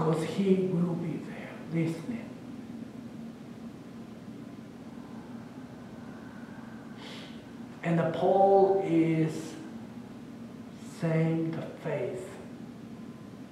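An older man speaks slowly and calmly in bursts, in a large echoing room.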